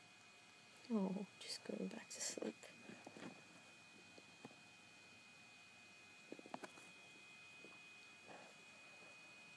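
A small squirrel nibbles and chews with soft clicks.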